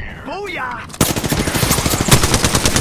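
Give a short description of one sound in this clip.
Rapid gunshots fire in a burst.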